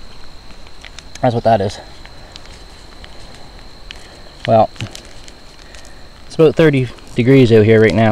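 A plastic wrapper crinkles as hands tear it open.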